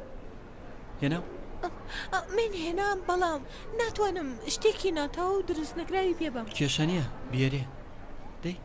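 A young girl speaks with animation, close by.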